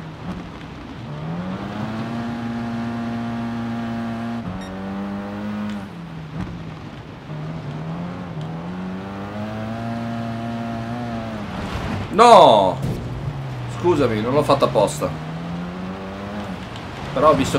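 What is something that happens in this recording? A rally car engine roars, revving up and down through gear changes.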